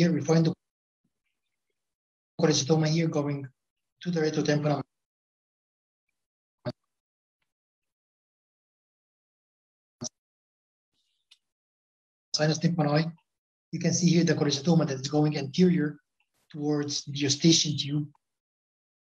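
A man speaks calmly over an online call, in short phrases with pauses.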